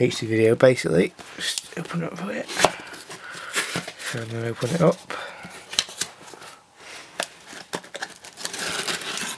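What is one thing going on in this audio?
Cardboard flaps scrape and rustle as a box is opened.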